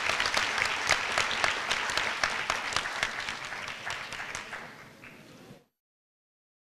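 An audience applauds in a large hall, the clapping slowly fading out.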